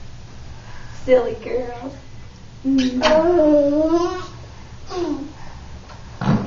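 A toddler girl babbles and squeals close by.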